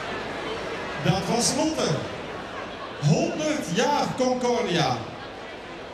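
A man speaks through a loudspeaker in a large hall.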